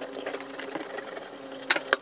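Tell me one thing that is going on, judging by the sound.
A knife slices through raw fish on a wooden board.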